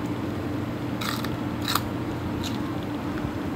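A woman bites into crisp raw vegetable with loud crunches close by.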